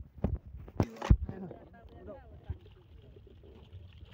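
Water splashes as fish are tipped in.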